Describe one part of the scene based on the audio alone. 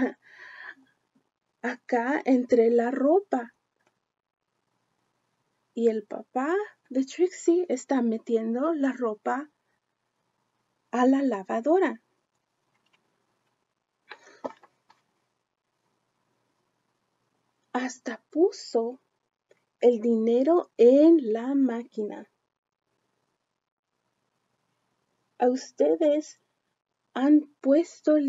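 A young woman reads a story aloud expressively, close by.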